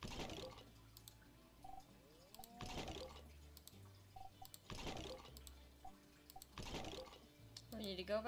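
A soft game menu whoosh sounds each time the item page changes.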